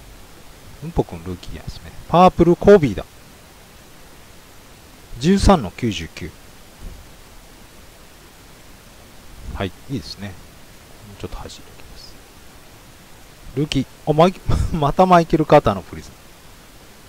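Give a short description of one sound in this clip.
A young man speaks calmly into a microphone in short bursts.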